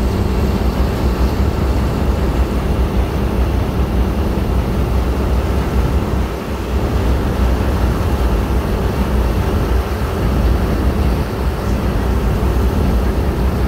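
Churning water splashes and rushes in a boat's wake.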